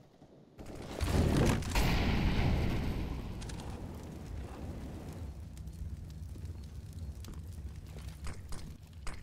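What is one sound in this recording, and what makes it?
Flames roar and crackle as a fire burns.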